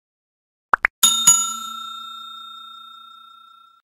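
A small bell chimes and slowly rings out.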